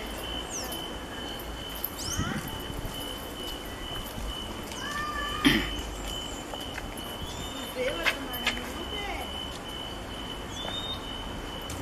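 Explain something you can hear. Footsteps tap on a pavement outdoors.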